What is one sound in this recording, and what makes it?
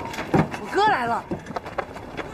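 A young woman calls out excitedly nearby.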